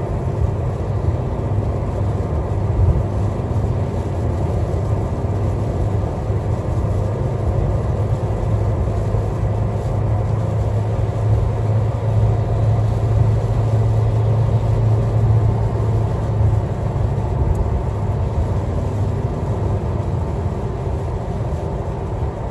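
Windscreen wipers sweep across the glass.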